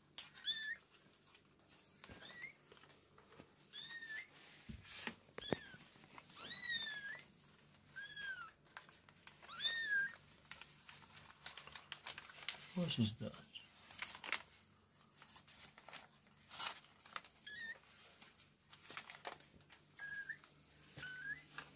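Tiny kittens mew in high, thin cries, close by.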